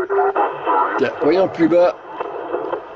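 A radio gives a brief squeal while being tuned.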